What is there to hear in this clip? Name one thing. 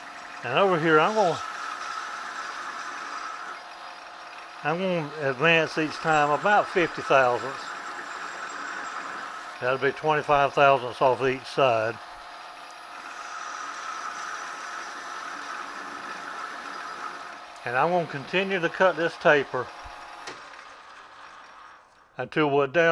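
A metal lathe whirs steadily, then winds down.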